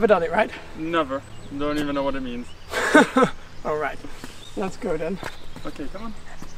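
A young man talks cheerfully nearby outdoors.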